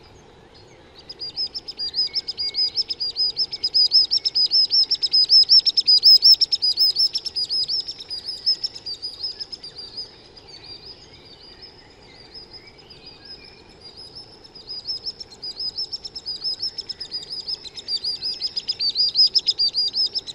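A small shorebird calls in rapid, high, piping trills.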